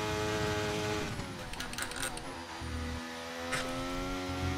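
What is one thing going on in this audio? A racing car engine crackles and drops in pitch as it brakes hard and shifts down.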